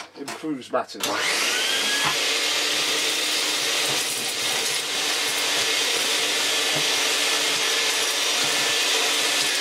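A vacuum cleaner whirs up and runs with a steady roar.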